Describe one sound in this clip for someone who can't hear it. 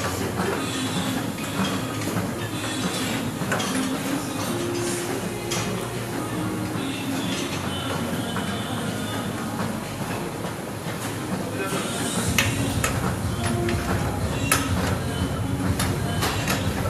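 An exercise bike whirs steadily as someone pedals.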